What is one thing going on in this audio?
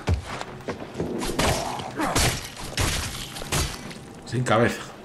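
A cleaver chops wetly into flesh.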